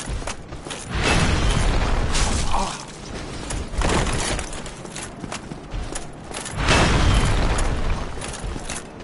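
Heavy weapons clash and thud in a loud fight.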